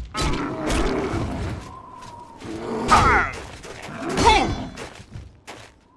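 A sword strikes a heavy creature with dull thuds.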